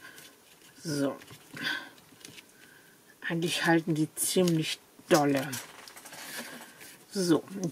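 Paper rustles and crinkles as it is pressed flat.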